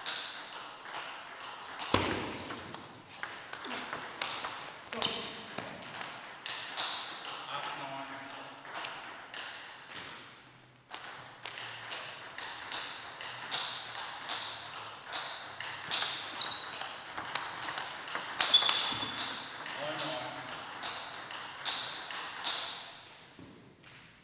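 A table tennis ball clicks quickly back and forth off paddles and the table in an echoing hall.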